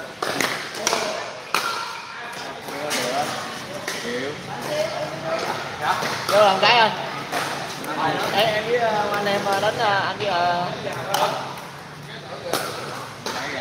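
Paddles pop sharply against a plastic ball in an echoing hall.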